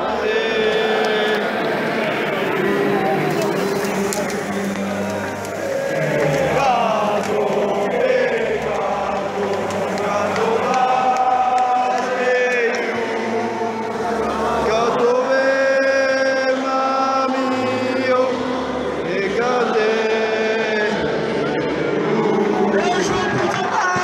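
A large crowd of young men chants and sings loudly all around, close by.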